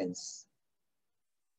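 A man speaks a word briefly through an online call.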